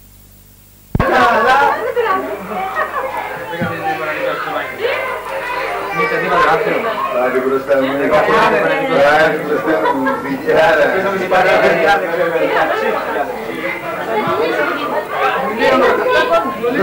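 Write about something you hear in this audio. Women chat and laugh nearby.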